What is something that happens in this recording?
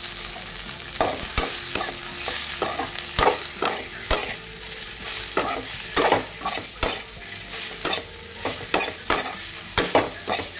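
A metal spatula scrapes and knocks against a metal pan.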